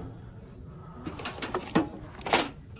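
Plastic packaging crinkles as it is handled.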